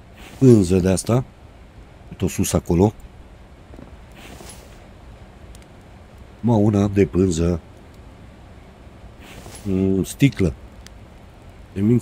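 A man talks with animation into a close microphone, in short bursts.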